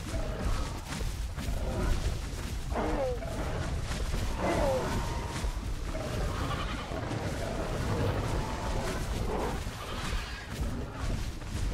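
Heavy footsteps thud on the ground.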